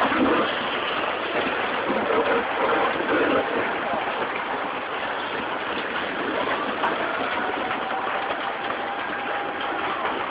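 Debris crashes and scrapes as the water carries it along.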